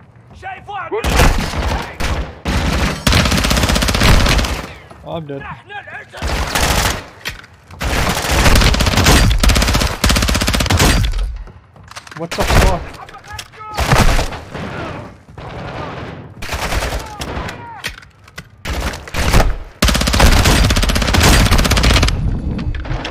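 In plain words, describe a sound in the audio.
Rapid gunfire bursts loudly from a submachine gun.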